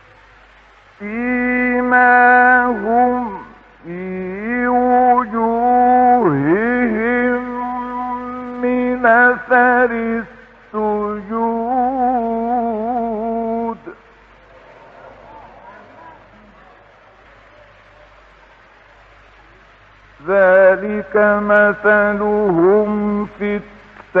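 An elderly man chants slowly in long, wavering melodic phrases, with pauses between them.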